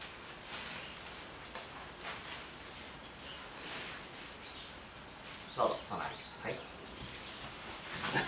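A paper wand swishes and rustles as it is waved.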